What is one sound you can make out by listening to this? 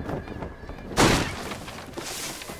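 A body lands with a heavy rustling thud in dry leaves.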